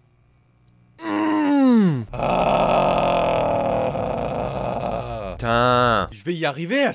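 A young man shouts and wails loudly into a microphone.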